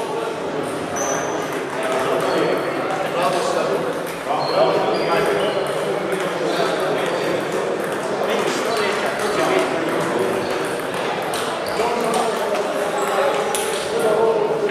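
Table tennis balls click on paddles and tables in a large echoing hall.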